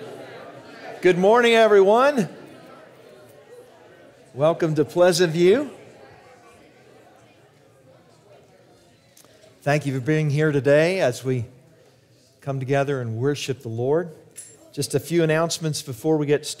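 A middle-aged man speaks through a microphone in an echoing hall, pausing between phrases.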